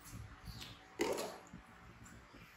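A plastic bottle drops and clatters on a hard floor.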